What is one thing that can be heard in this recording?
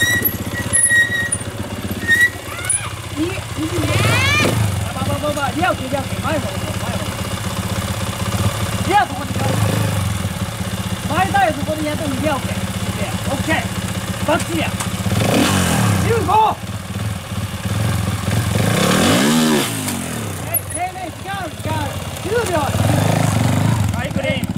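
A motorcycle engine idles and revs in short bursts.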